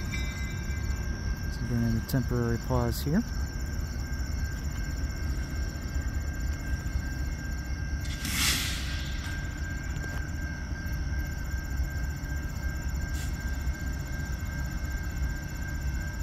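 A locomotive engine rumbles low and steadily as the train approaches.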